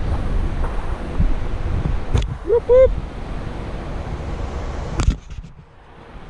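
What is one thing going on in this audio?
Wind buffets the microphone with a loud rumble.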